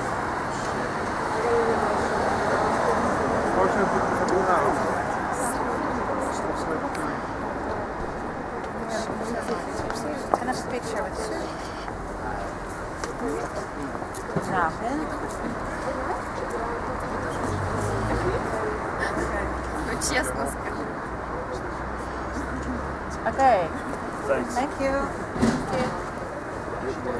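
Several young people talk and chatter close by.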